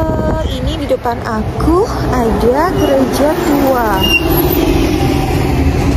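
A bus drives by.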